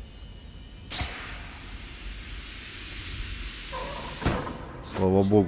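Steam hisses loudly in a sudden burst, then cuts off.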